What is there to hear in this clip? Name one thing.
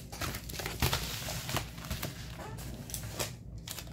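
A padded mailer rustles as it is set down.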